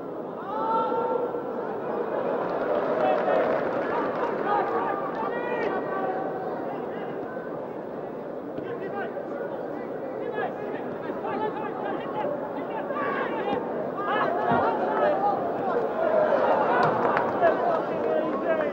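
A large stadium crowd murmurs and cheers steadily, heard from a distance.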